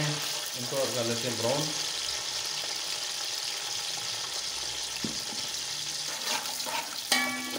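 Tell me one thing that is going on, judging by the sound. Onions sizzle in hot oil.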